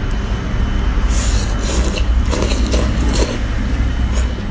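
A young woman slurps noodles loudly, close by.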